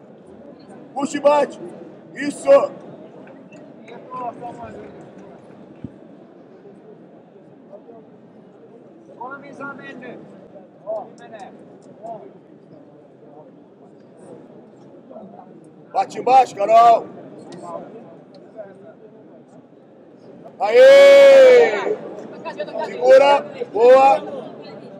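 Men shout loudly from the side of the mat, in short bursts.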